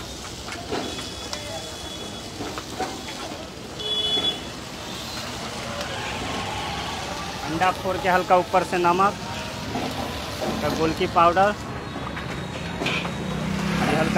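Eggs sizzle in hot oil in a pan.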